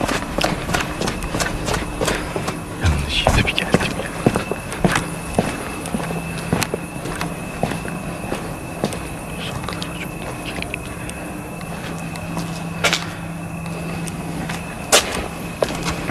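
Footsteps crunch and scuff on cobblestones.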